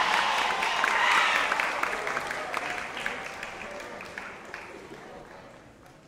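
Hands clap in a crowd.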